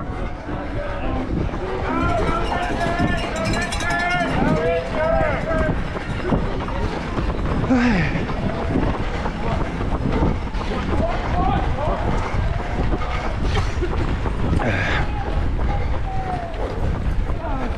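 Footsteps of many runners patter on pavement close by.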